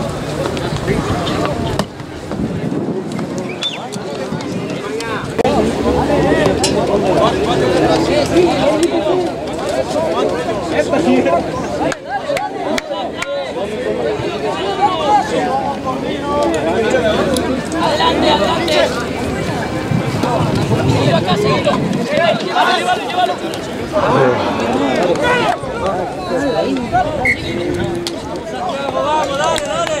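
Young men shout and call out to each other on an open field.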